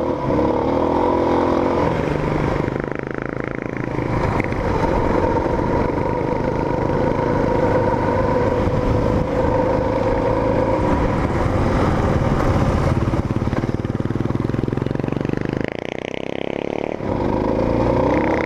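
A motorcycle engine roars steadily close by, rising and falling in pitch.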